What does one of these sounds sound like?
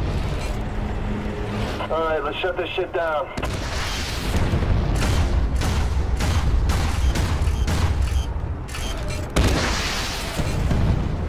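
Explosions boom and crackle in quick succession.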